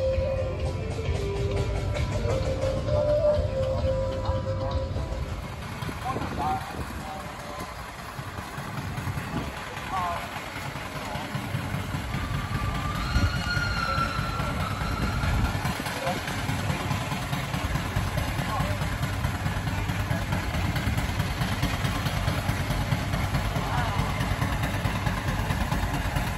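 A crowd of people chatters outdoors in wind.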